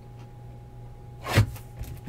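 A knife slices through plastic wrap.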